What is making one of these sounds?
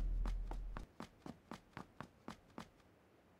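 Footsteps rustle quickly through dry grass.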